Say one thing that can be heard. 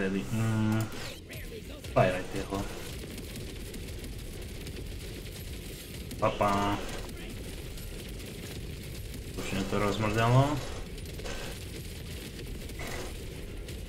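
A man talks casually into a close microphone in short bursts.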